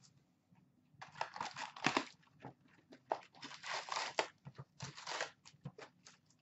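Paper and cardboard rustle as a box is opened.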